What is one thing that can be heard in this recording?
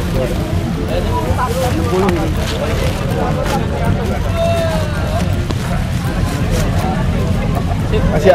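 Plastic bags rustle as a hand touches them.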